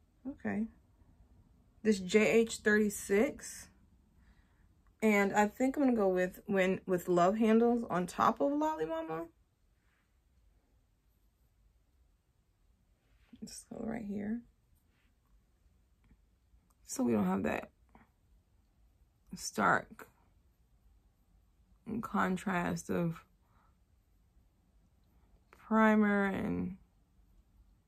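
A young woman talks calmly and close to the microphone, in short bursts with pauses.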